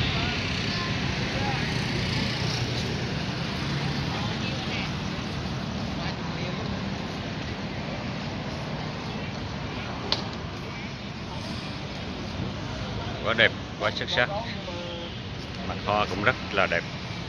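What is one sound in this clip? Motorbike traffic hums steadily nearby outdoors.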